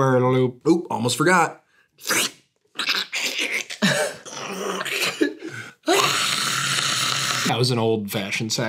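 A second young man answers, joking, close to a microphone.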